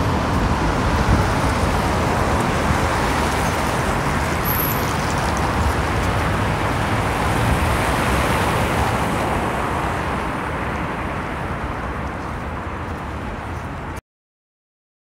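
Cars drive past on a city street with a steady traffic rumble.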